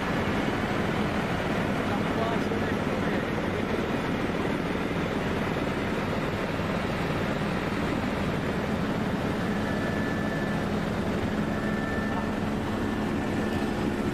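A helicopter engine and rotor roar steadily from inside the cabin.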